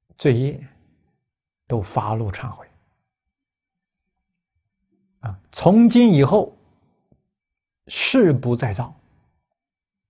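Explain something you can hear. A middle-aged man speaks calmly and slowly into a close microphone, in short phrases with pauses.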